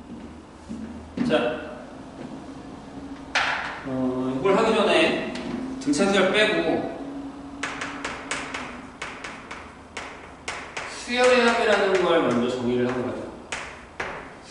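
A man speaks with animation in a room with a slight echo.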